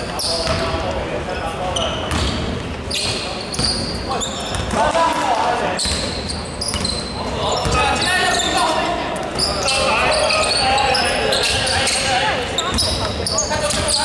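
A basketball bounces on the floor with echoing thuds.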